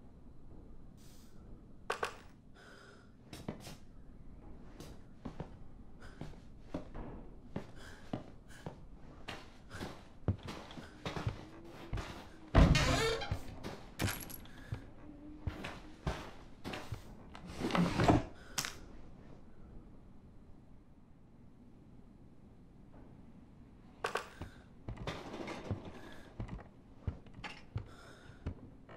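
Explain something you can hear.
Short soft clicks sound as menu items are selected.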